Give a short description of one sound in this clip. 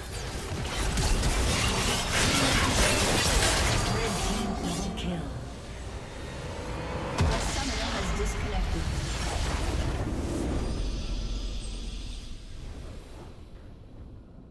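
Magic blasts and weapon strikes crackle in a fast video game fight.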